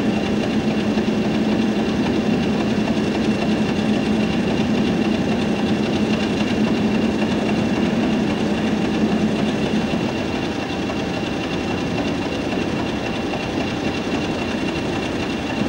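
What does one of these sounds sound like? A diesel train engine rumbles steadily nearby.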